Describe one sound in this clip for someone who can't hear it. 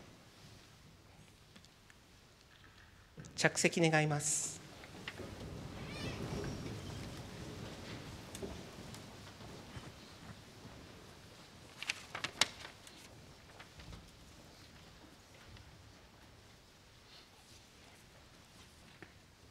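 A large audience shifts and rustles in an echoing hall.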